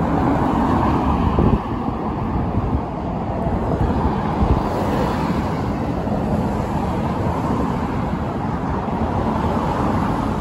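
Traffic drives past steadily on a busy street outdoors.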